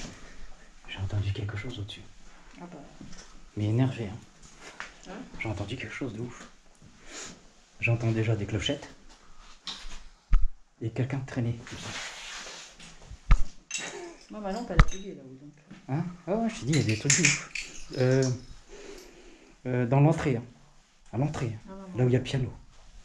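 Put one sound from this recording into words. A man talks in a low voice nearby.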